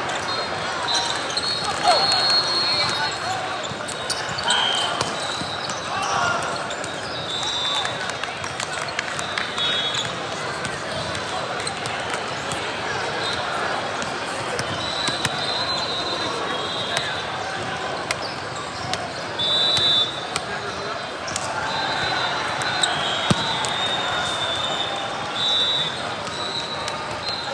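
A crowd of players and spectators chatters in a large echoing hall.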